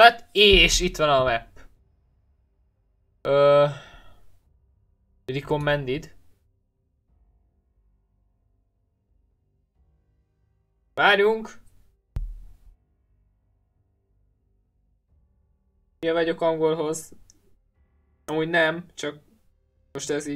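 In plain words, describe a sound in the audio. A young man talks in short bursts close to a headset microphone.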